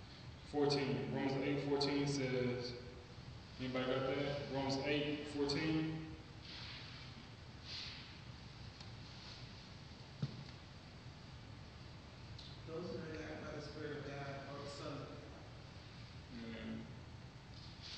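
A man reads aloud calmly, heard close in a quiet hall.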